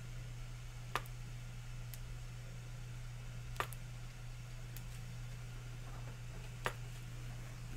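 A plastic bottle knocks lightly against a plastic tray.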